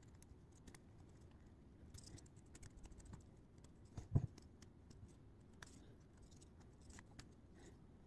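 A rubber glove crinkles and rustles in a hand.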